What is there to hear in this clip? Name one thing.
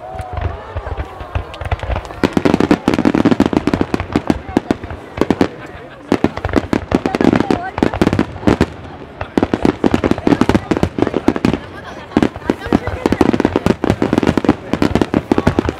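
Fireworks crackle and fizzle after bursting.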